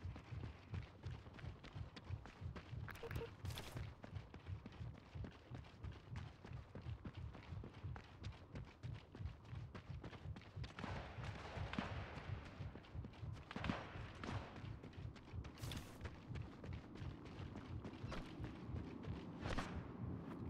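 Footsteps thud quickly on rubble and pavement.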